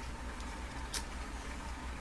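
A lighter clicks once.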